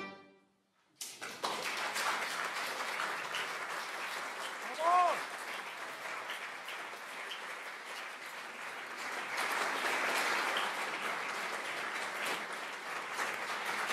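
A small audience applauds steadily.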